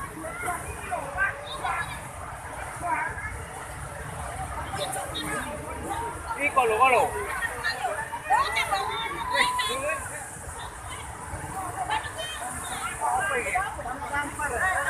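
Muddy floodwater rushes and roars loudly.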